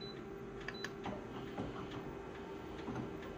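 A copier whirs and clunks as it starts scanning.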